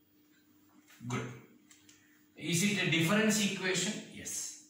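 A man speaks calmly and clearly nearby, explaining.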